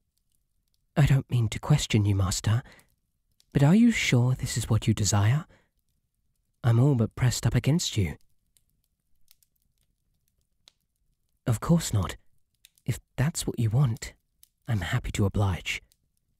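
A young man speaks softly and close to a microphone, in short bursts with pauses.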